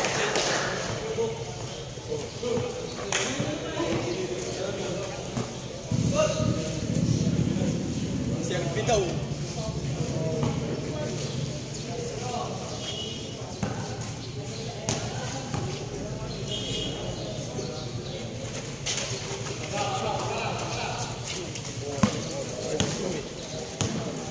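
A crowd of spectators chatters and calls out in the distance, outdoors.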